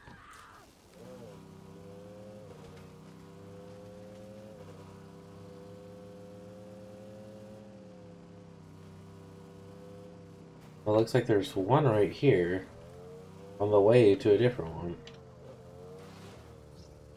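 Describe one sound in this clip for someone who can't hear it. A motorbike engine drones steadily.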